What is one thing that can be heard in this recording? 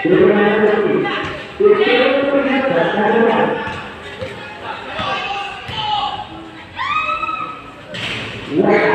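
Young people shout and cheer loudly nearby.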